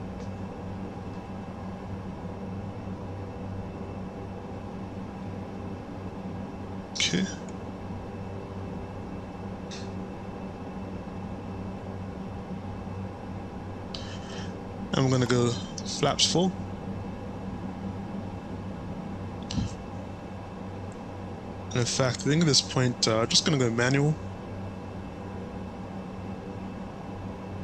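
Aircraft engines drone steadily in the cabin.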